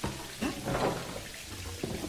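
A rusty metal valve wheel creaks as it is turned by hand.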